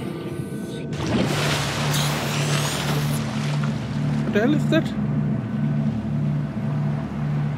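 Waves splash and lap at the surface outdoors.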